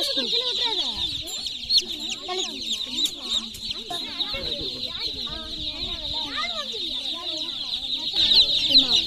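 Children talk nearby.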